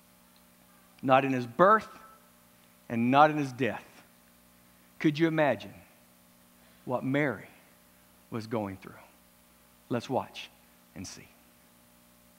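A middle-aged man speaks loudly and with feeling in short bursts, in a hall with a light echo.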